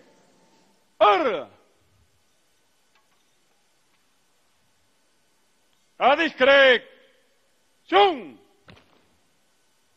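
A man shouts short commands.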